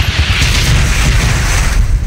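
Flames roar and crackle after an explosion.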